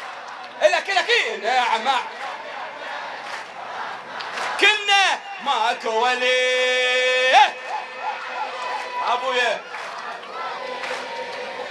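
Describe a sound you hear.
A man chants loudly and with passion into a microphone.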